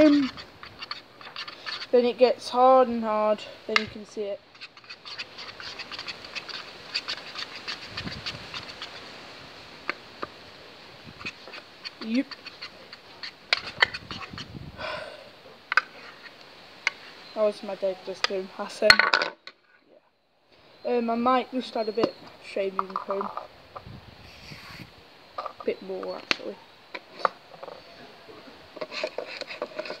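A spoon scrapes and clicks against a plastic tub.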